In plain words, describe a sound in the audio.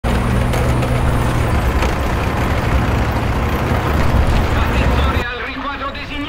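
A tracked vehicle's engine rumbles steadily as it drives over snow.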